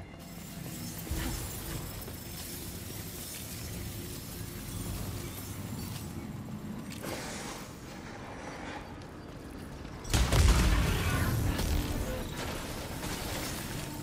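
Laser gunfire crackles and buzzes in rapid bursts.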